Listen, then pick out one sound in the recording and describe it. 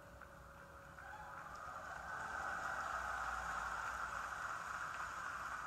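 A large crowd cheers loudly, swelling to a roar.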